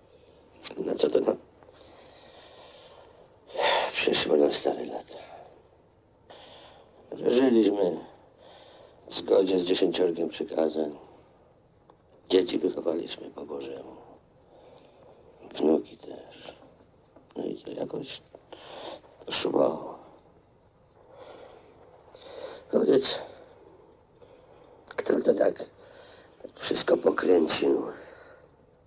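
An older woman speaks in a low, worried voice close by.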